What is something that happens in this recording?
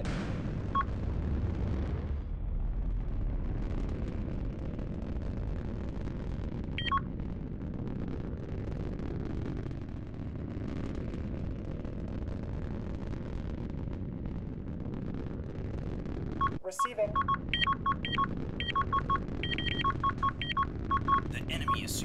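A spacecraft engine rumbles steadily with a low roar.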